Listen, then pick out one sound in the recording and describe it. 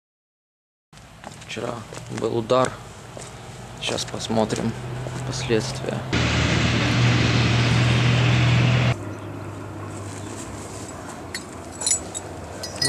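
Footsteps crunch over debris outdoors.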